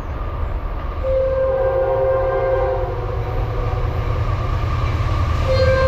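A train horn blares in long blasts.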